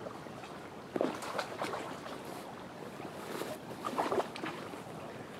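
A boot squelches in wet mud at the water's edge.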